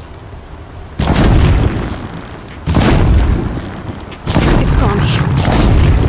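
Fire bursts with loud whooshing roars.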